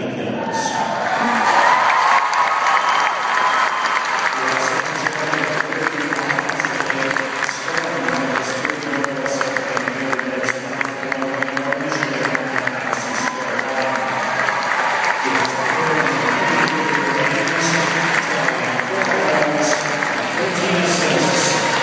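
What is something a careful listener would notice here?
A crowd cheers and claps loudly.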